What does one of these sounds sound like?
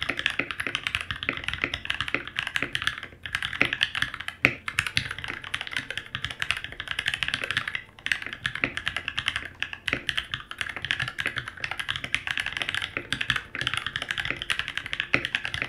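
Keys on a keyboard clack rapidly under fast typing.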